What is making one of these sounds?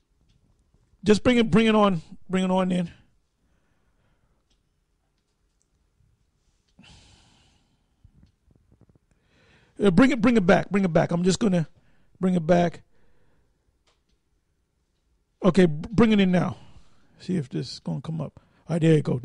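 A middle-aged man speaks into a microphone with animation, in short bursts.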